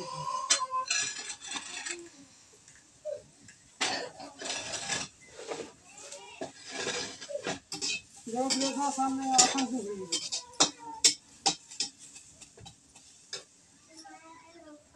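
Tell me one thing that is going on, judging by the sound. A hoe strikes hard, stony ground again and again.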